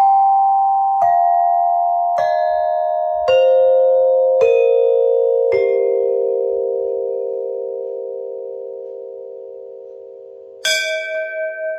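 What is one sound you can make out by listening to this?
Metal chimes ring out under a quick series of mallet strikes and slowly fade.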